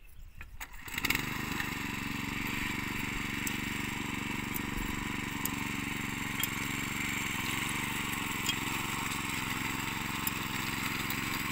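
A small engine runs steadily nearby.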